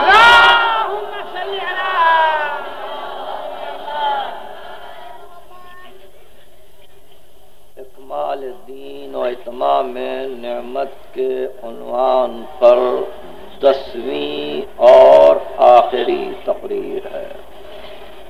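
An elderly man speaks with animation through a crackly old recording.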